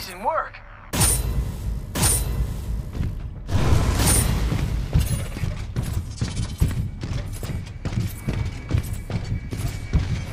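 Heavy metallic footsteps thud and clank steadily.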